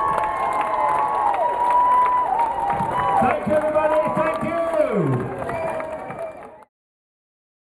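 A large outdoor crowd sings together.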